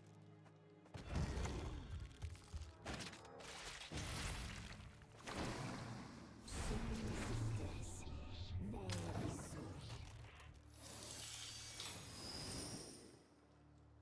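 Game sound effects thud and whoosh as cards are played.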